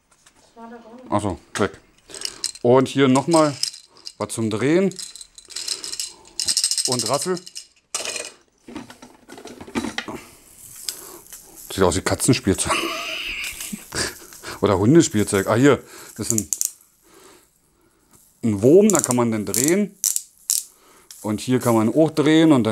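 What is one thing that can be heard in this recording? A plastic toy rattles in a man's hands.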